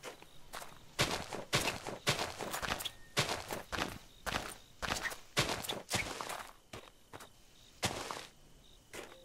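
A shovel digs into earth with quick, repeated scraping knocks.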